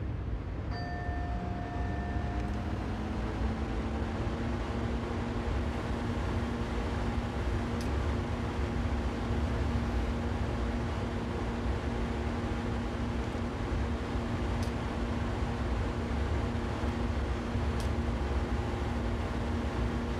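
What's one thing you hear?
A train motor hums, rising in pitch as it speeds up.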